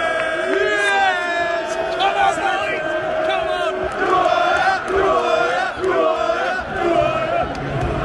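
A large crowd of men sings and chants loudly close by.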